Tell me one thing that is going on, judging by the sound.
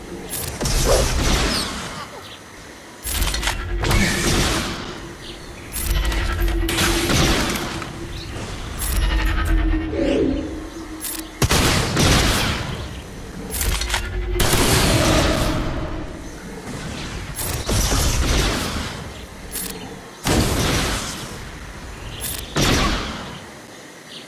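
Blasters fire and explosions burst in loud, rapid bursts.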